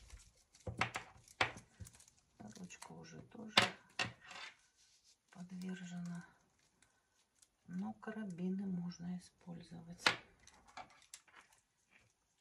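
Leather strap rustles and creaks as it is handled.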